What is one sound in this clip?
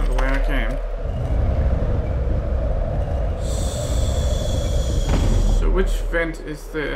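A heavy metal door rumbles as it opens.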